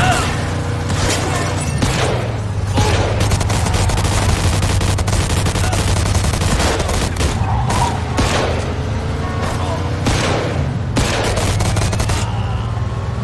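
Machine guns fire in rapid bursts close by.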